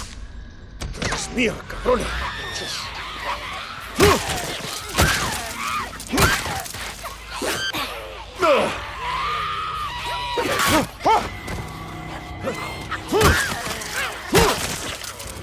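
Creatures shriek and snarl up close.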